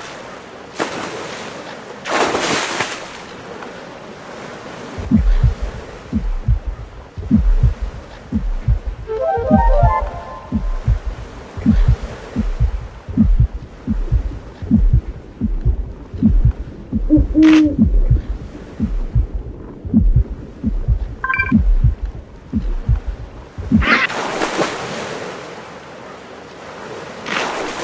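Water splashes loudly as a shark breaks the surface.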